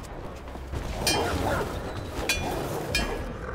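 Metal clangs as a pipe strikes something.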